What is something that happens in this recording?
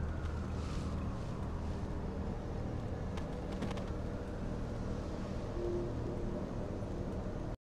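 A low, steady hum drones throughout.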